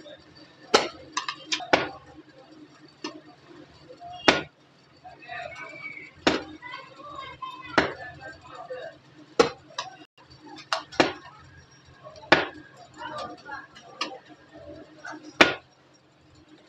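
A metal spatula scrapes and clinks against a large pan.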